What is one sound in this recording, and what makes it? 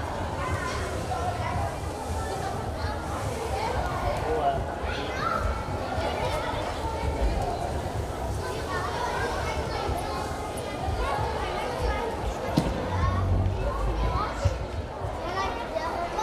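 Children's voices chatter and call out throughout a large echoing hall.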